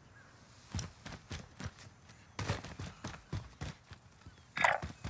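Footsteps tap on hard pavement.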